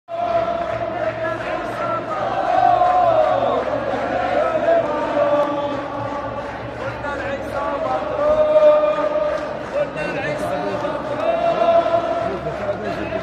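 A large crowd of men and women chants loudly together outdoors.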